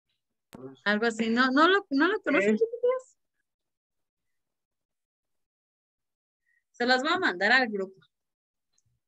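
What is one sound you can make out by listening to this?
A young woman speaks calmly through an online call, in short phrases with long pauses.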